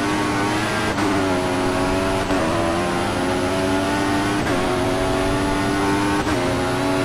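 Gears shift with short sharp jolts as the engine climbs.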